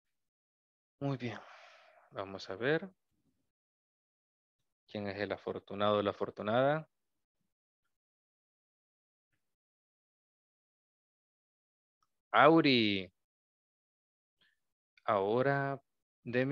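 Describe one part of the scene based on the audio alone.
A man speaks with animation over an online call, in short bursts.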